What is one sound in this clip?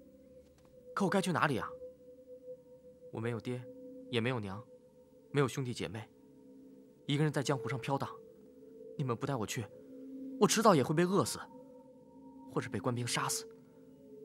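A young man speaks plaintively, close by.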